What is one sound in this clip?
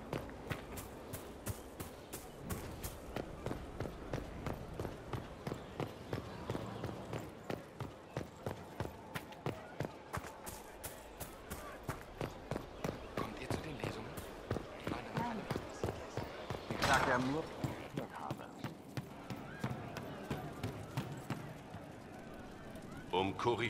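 Footsteps run quickly and evenly over ground and stone steps.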